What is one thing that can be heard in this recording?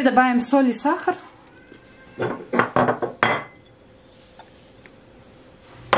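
A plastic lid knocks against a glass bowl.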